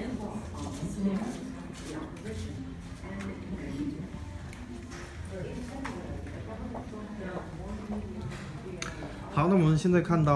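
A group of people chat in the background of a room.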